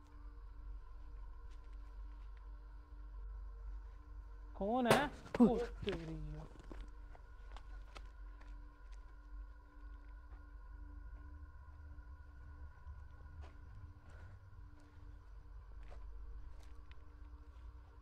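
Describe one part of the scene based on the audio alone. Footsteps rustle through dry undergrowth.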